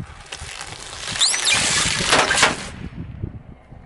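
Balloons squeak and burst under a rolling car tyre.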